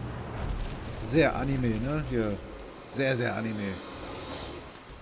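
A large wolf growls and snarls.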